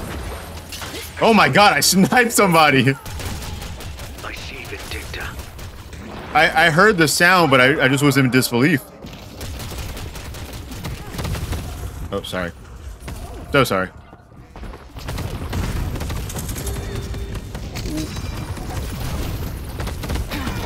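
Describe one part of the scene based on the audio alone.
Gunfire and blasts from a video game rattle on.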